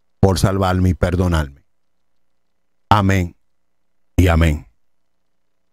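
A middle-aged man speaks with animation into a close microphone, in short bursts.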